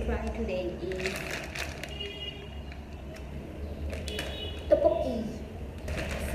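A plastic snack packet crinkles in a young woman's hands.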